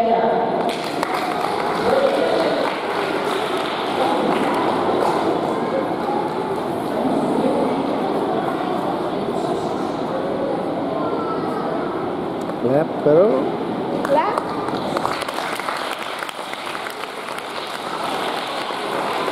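Many children and women chatter in a large echoing hall.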